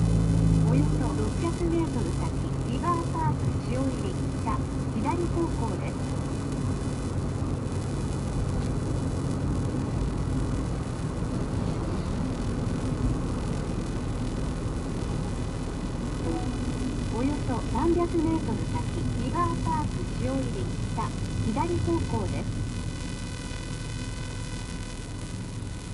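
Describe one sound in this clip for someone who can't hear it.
Tyres roll over a paved road with a low rumble.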